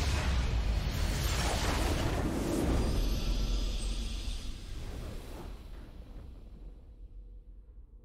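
A loud explosion roars and slowly fades away.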